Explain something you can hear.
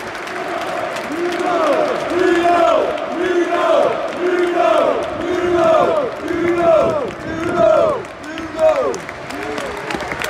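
A large stadium crowd sings a chant loudly in unison.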